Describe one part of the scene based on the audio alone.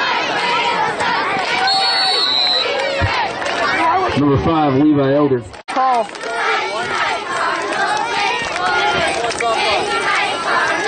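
A crowd of people chatters and shouts outdoors.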